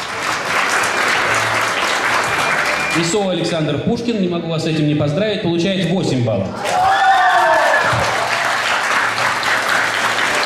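A crowd applauds in a large room.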